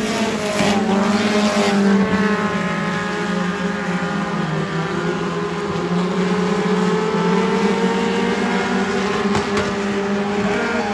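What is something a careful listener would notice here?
Race car engines roar as the cars circle a dirt oval.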